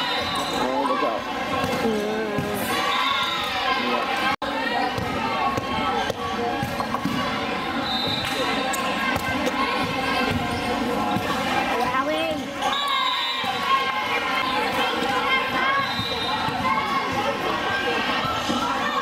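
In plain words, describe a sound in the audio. A crowd of spectators chatters and cheers, echoing in a large hall.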